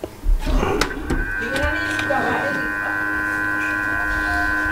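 A hot air blower hums steadily.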